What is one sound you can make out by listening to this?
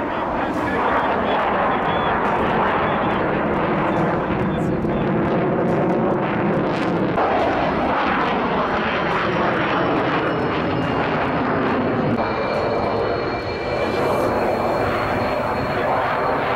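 A jet engine roars loudly overhead, rising and falling in pitch as it turns.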